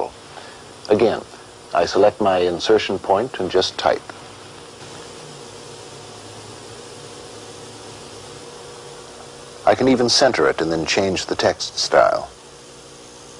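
A middle-aged man speaks calmly and clearly, close by.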